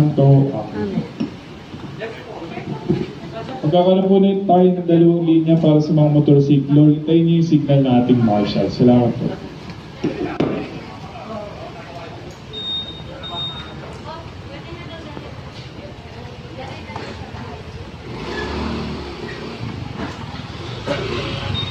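A crowd murmurs outdoors.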